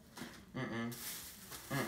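A young man chews food.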